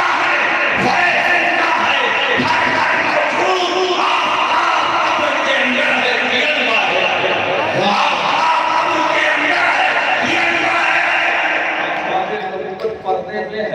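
An elderly man speaks forcefully through a loudspeaker system, echoing in an open space.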